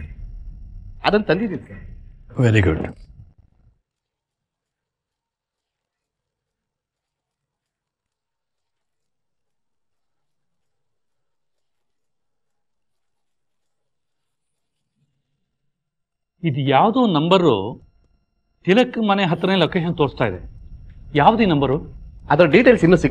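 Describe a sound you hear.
A second man speaks sternly and close by.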